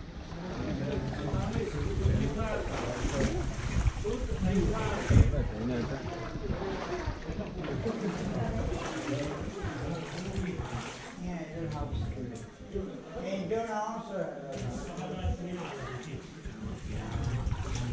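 Several young men and women talk and chatter nearby, with voices echoing off the walls.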